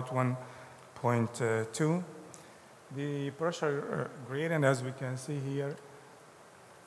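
A man speaks calmly over a microphone.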